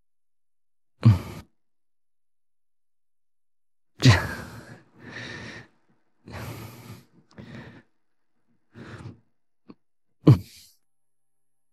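A young man speaks tensely in short bursts.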